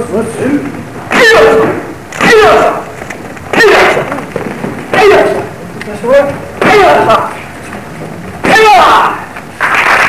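Men shout sharply with each strike.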